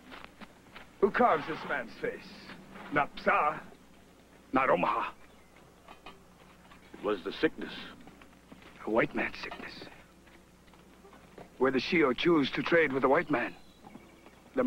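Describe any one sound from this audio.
An older man speaks forcefully, close by.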